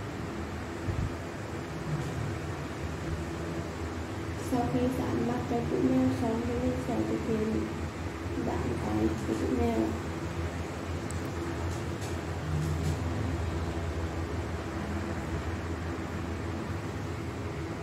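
A plastic bottle cap taps softly on a tabletop.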